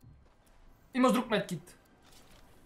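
A young man talks briefly close to a microphone.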